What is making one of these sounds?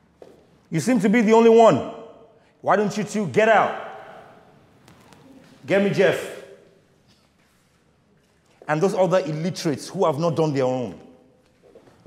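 A young man sings loudly in short phrases.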